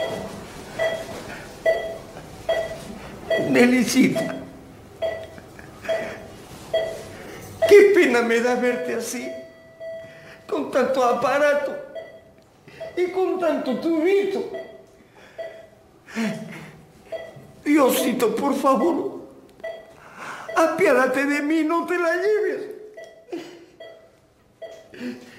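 A heart monitor beeps steadily.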